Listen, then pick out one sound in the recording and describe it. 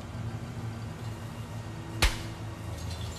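Bolt cutters snap through a metal chain with a sharp crack.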